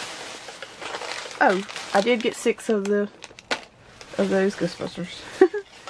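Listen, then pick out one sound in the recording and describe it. A foil toy package crinkles in a hand.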